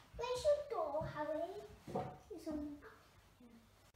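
A young child talks with excitement close by.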